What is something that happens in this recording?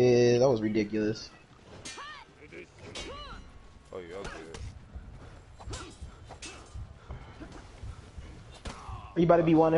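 Swords clash and ring in quick fighting.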